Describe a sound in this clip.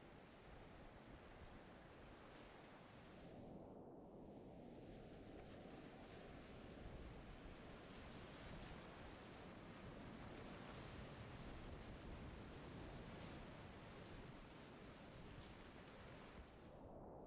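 A paddle splashes into the water.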